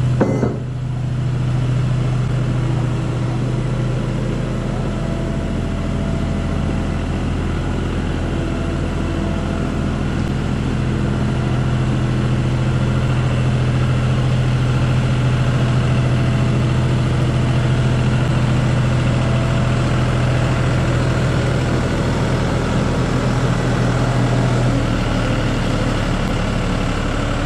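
An old diesel engine runs with a steady, deep rumbling chug close by.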